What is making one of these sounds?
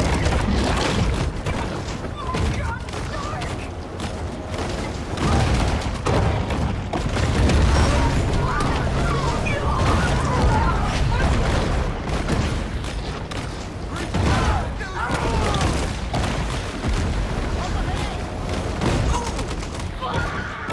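Water splashes and churns as a large shark thrashes through it.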